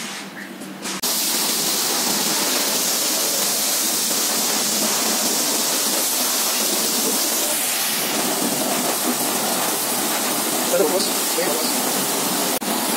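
A pressure washer hisses steadily as water sprays onto a motorcycle.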